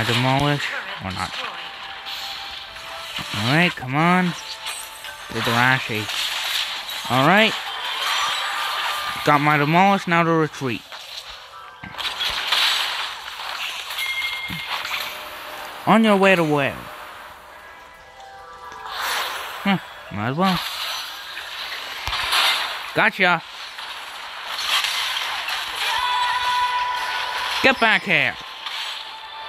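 Pitched game sound effects sweep up and down again and again.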